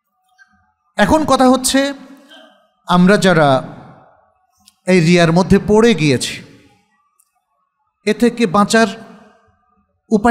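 A middle-aged man speaks slowly and calmly through a microphone, in bursts with pauses, in a room with a slight echo.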